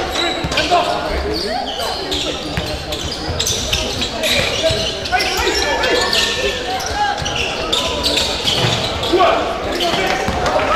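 Players shout to each other across the hall.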